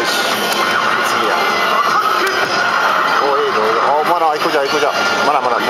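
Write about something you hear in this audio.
Arcade game music and sound effects blare loudly from a loudspeaker.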